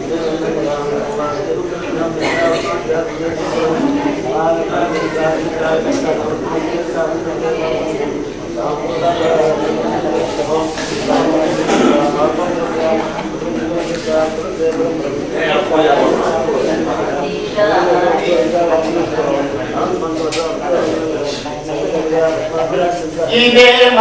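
A man speaks or chants steadily into microphones, heard through a loudspeaker.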